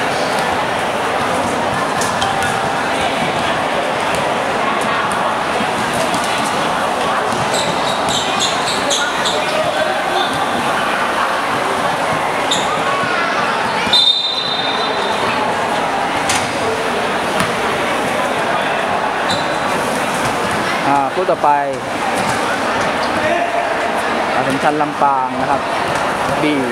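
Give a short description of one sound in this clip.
A crowd chatters steadily in a large echoing hall.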